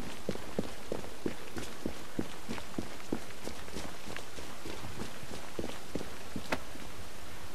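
Footsteps run quickly on wet cobblestones.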